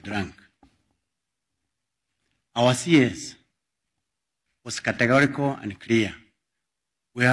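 A middle-aged man speaks slowly and firmly into a microphone, with pauses.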